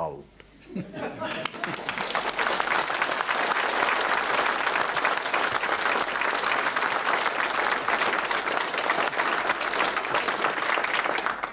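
An audience applauds steadily in a large hall.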